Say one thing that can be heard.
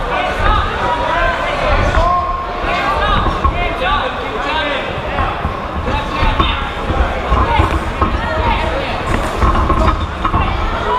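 A crowd of spectators shouts and cheers loudly in a large echoing hall.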